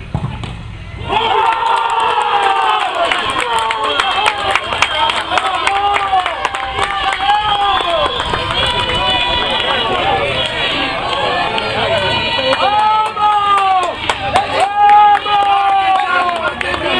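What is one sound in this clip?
A group of young men shout and cheer excitedly outdoors.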